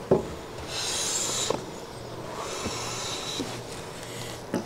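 A hand plane shaves along a board with a soft rasping hiss.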